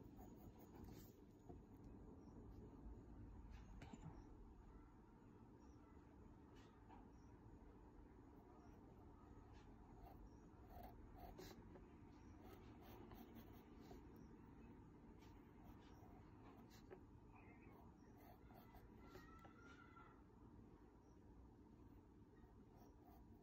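A pencil scratches and taps lightly on paper.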